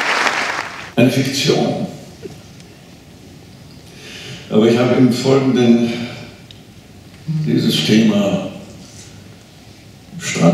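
An elderly man sings into a microphone.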